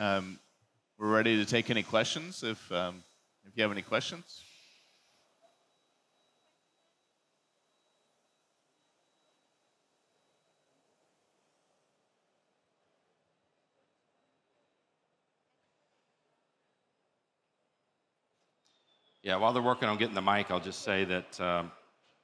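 A man speaks through a microphone to an audience.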